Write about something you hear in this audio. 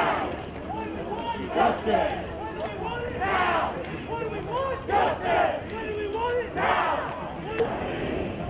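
A crowd of marchers calls out outdoors.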